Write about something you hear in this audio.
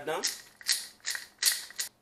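A pepper mill grinds with a dry crackle.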